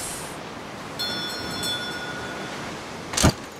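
A short, bright chime rings.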